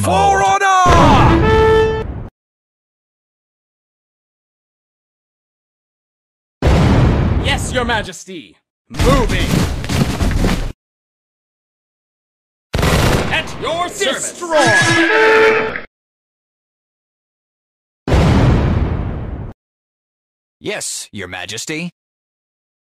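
Short bursts of battle sound effects play from a strategy game, with silent gaps between them.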